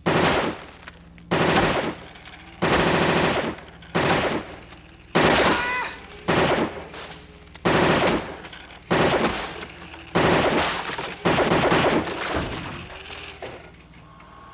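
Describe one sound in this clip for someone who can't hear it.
A pistol fires loud, echoing shots in rapid bursts.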